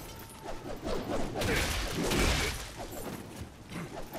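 A sword swishes and clashes in a fight.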